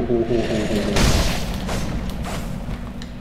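Swords clash with sharp metallic strikes.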